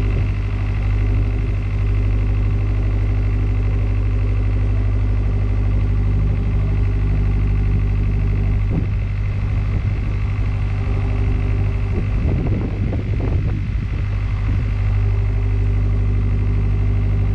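A boat engine chugs steadily nearby.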